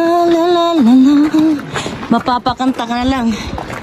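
Footsteps scuff on a rocky path.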